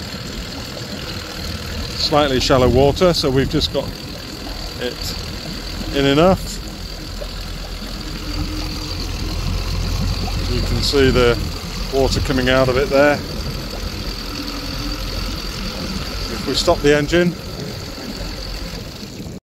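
An outboard motor idles with a steady low hum.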